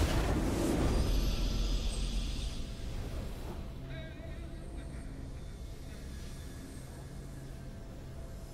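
A triumphant victory fanfare plays.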